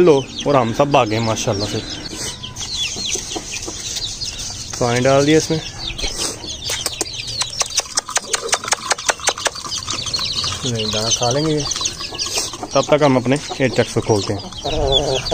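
Many chicks chirp shrilly and constantly.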